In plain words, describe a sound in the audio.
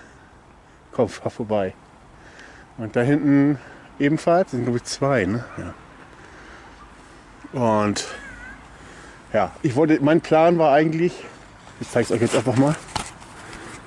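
A man talks close up, in short bursts.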